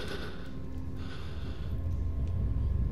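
Flames burst and crackle close by.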